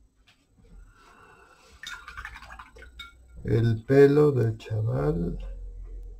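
A brush swishes in a jar of water.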